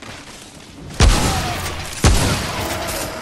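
A rifle fires two loud shots in an echoing space.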